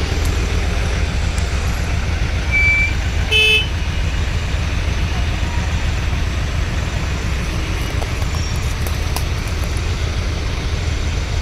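Traffic rumbles steadily along a road outdoors.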